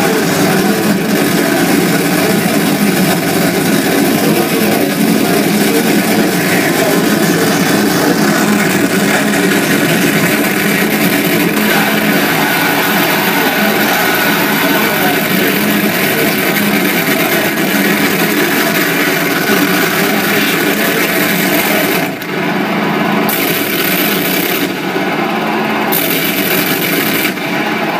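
Loud electronic music drones and pulses from loudspeakers.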